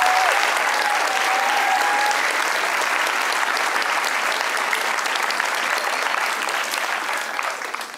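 A large crowd applauds loudly, then slowly fades.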